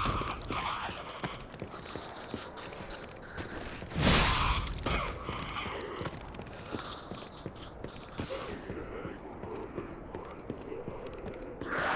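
Footsteps squelch slowly across wet, muddy ground.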